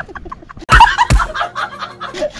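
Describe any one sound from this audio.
A man laughs loudly and wildly.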